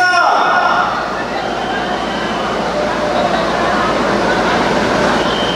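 A large crowd of young men chants and shouts in the open air.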